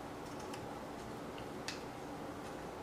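Scissors snip through thin material.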